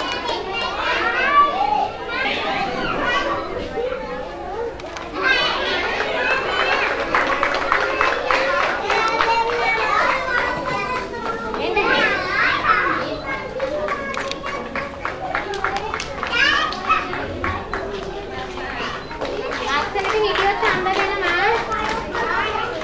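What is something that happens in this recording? A crowd of young children chatters and calls out in an echoing hall.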